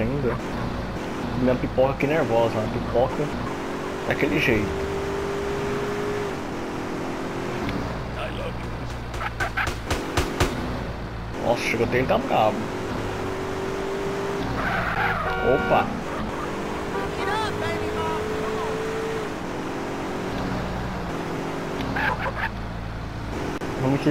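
A car engine hums steadily as a car drives along.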